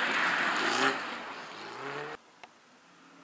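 A car engine roars loudly past at close range, its pitch dropping as it speeds away.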